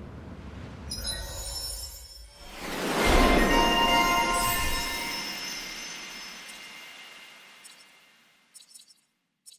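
A swelling magical chime rings out and slowly fades.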